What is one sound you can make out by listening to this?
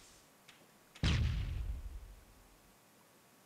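A grenade bursts with a low thud.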